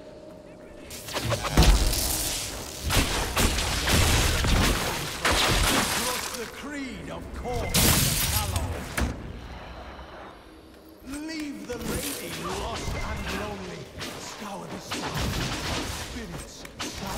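Magic blasts crackle and crash in a fight.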